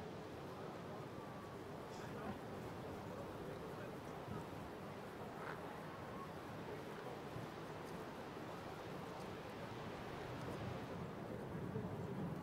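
Horses' hooves thud softly on grass as they walk.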